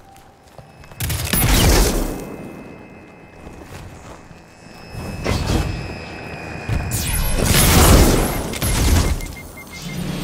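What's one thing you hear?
Heavy blasts boom and crash close by.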